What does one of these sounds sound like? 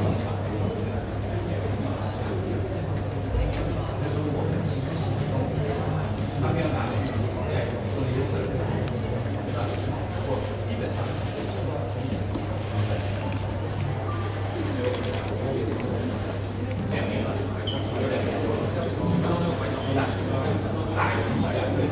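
A crowd of men and women murmur and chatter nearby.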